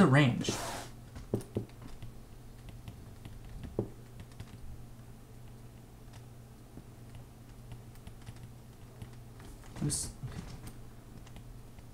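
A stylus taps and scratches softly on a tablet.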